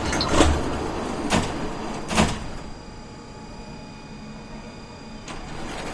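A tram rumbles along its rails.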